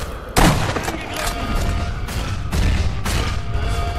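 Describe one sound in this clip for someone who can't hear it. An explosion booms with a loud blast.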